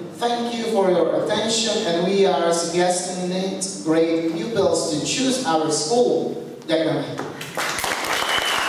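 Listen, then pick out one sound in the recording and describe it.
A man speaks formally into a microphone over loudspeakers in an echoing hall.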